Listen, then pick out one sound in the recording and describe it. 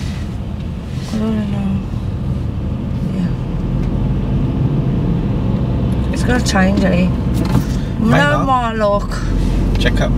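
A man speaks calmly close by inside a car.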